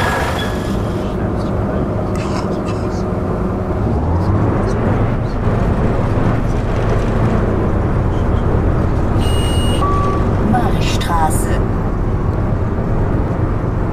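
A bus engine hums and rumbles steadily as the bus drives.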